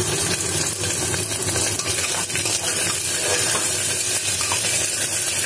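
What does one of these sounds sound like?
Potatoes sizzle steadily as they fry in oil.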